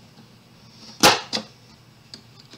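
A paper punch clicks sharply.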